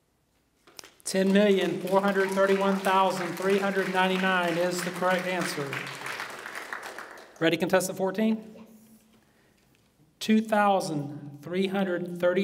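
A man speaks clearly through a microphone and loudspeakers in a large room, reading out.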